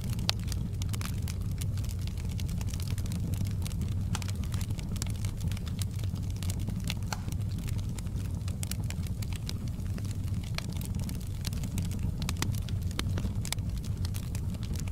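Burning logs crackle and pop sharply throughout.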